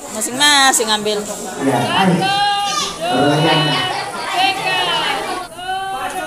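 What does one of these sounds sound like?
A group of men and women speak out together in unison.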